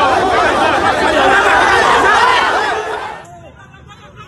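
A crowd shouts loudly and excitedly close by.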